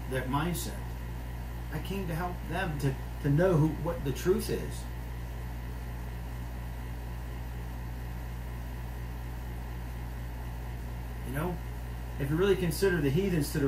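A middle-aged man speaks calmly, heard as if over an online call.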